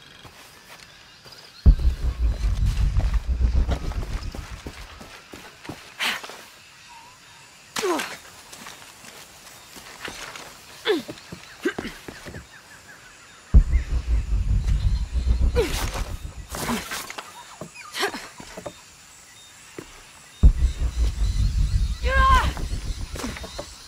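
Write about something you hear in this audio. Footsteps rustle and crunch through leaves and undergrowth.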